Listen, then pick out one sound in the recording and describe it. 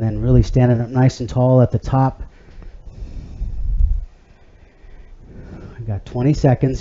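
A man talks calmly and clearly into a nearby microphone.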